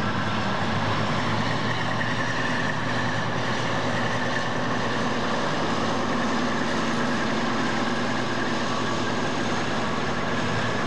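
Steel wheels clatter on the rails.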